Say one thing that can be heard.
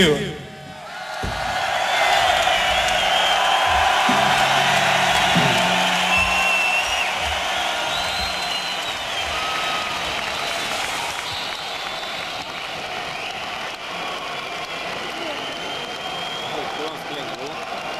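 A large crowd cheers and whistles loudly in a big echoing hall.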